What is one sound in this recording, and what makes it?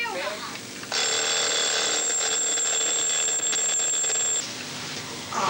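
An alarm clock rings with a steady, shrill tone.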